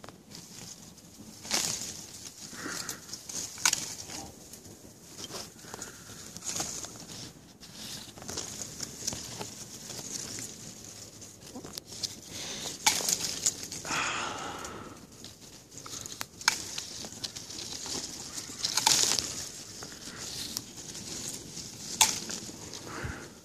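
Leaves rustle and brush close by in bursts.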